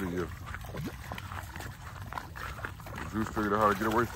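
Puppies splash through shallow water.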